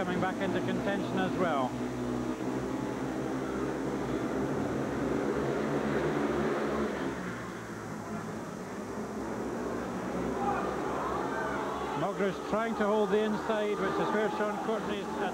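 Motorcycle engines roar as riders race around a track.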